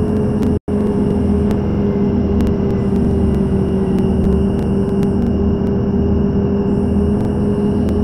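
A bus passes close by with a rushing sound.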